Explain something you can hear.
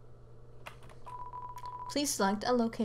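Rapid electronic blips sound as text types out.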